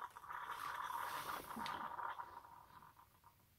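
A coffee machine whirs with a steady hum.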